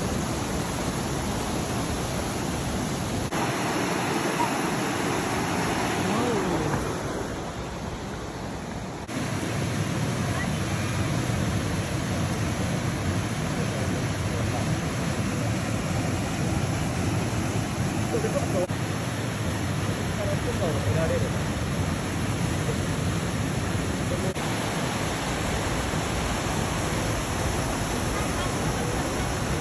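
A waterfall roars and splashes over rocks close by.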